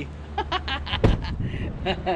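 A truck door thumps shut.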